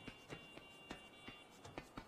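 Metal rungs clank as someone climbs a ladder.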